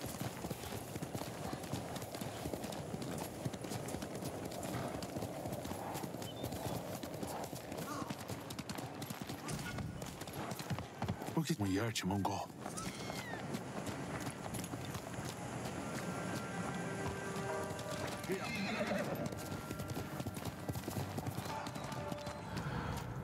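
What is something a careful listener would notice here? A horse gallops, its hooves thudding on soft ground.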